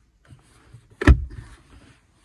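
A plastic lid snaps shut with a knock.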